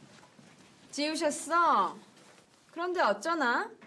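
A young woman asks a question in a bright, teasing voice.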